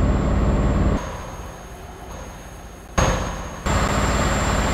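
A truck engine rumbles more quietly from outside.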